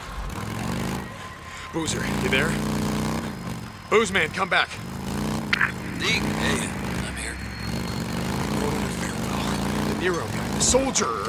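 A motorcycle engine rumbles steadily.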